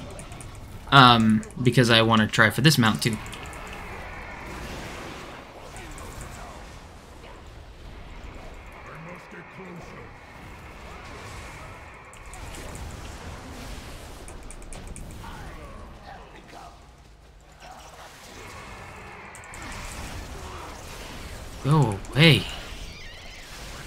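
Game spells whoosh and crackle in a fight.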